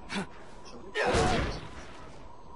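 A heavy blow lands with a dull thud.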